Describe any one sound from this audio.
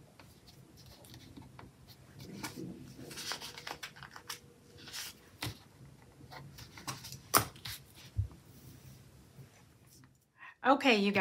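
Paper pages rustle and flip under hands.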